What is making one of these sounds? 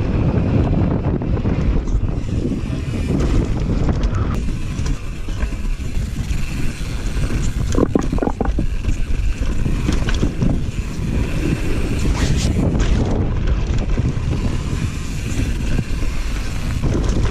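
Bicycle tyres roll and crunch over dirt and rock.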